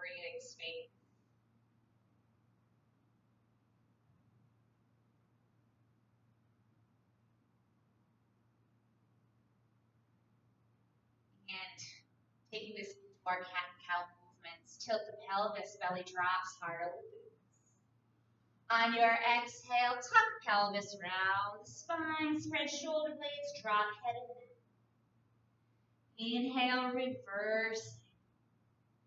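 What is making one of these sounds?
A woman speaks calmly and slowly, as if giving instructions.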